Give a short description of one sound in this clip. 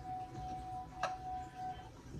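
A cup is set down with a knock.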